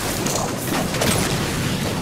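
Gunfire crackles rapidly.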